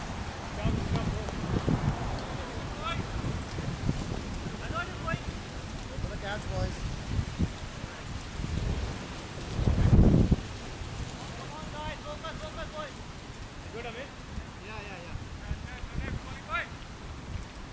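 Men talk and call out across an open field at a distance.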